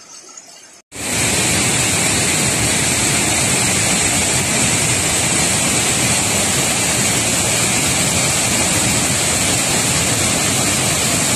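A waterfall roars loudly and steadily.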